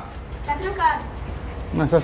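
A metal gate latch clinks and rattles.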